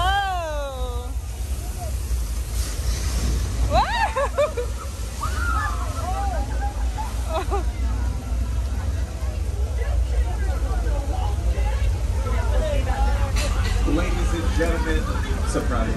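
Water gushes and roars in a strong, churning flood close by.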